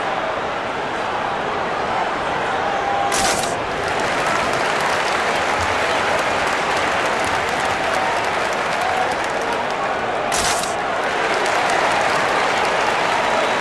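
A large crowd cheers and murmurs steadily in a big echoing arena.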